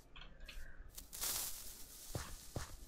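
A fuse is struck alight with a short scrape and hiss.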